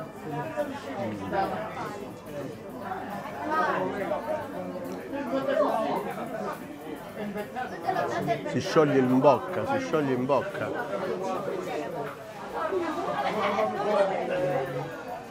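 A man talks with animation close to a lapel microphone.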